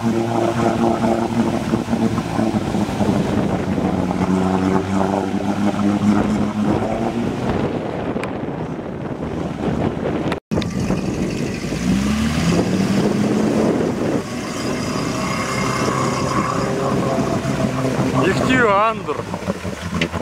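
Muddy water churns and splashes around a UAZ-469 off-roader's wheels.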